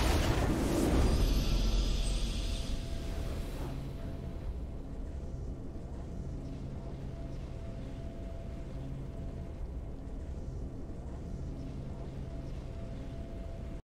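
A triumphant fanfare swells and then settles into soft music.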